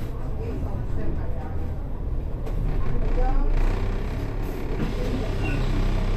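A bus engine idles nearby with a low, steady rumble.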